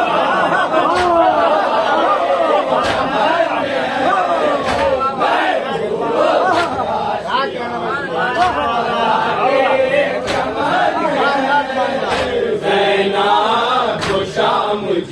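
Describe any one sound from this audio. Men beat their chests with their hands in a steady rhythm.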